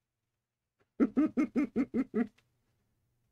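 A man chuckles softly close to a microphone.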